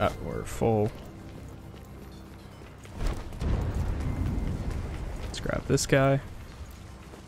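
A young man talks close into a microphone.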